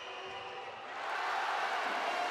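A crowd roars and cheers loudly.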